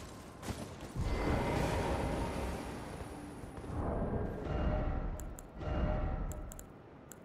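A magical shimmer swells with a soft rushing roar.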